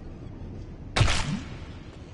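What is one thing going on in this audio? A creature bursts apart with a loud whoosh.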